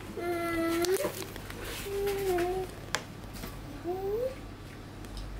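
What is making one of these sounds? A toddler girl babbles and hums nearby.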